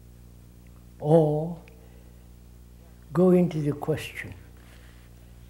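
An elderly man speaks slowly and calmly into a close microphone, with long pauses.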